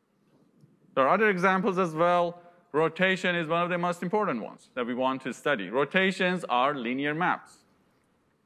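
A man lectures calmly through a microphone.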